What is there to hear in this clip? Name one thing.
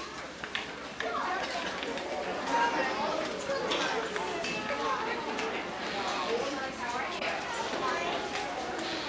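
Young children chatter nearby.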